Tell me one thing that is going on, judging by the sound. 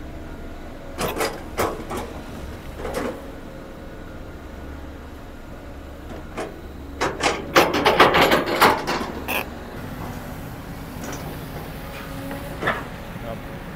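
An excavator bucket scrapes and thumps into dirt.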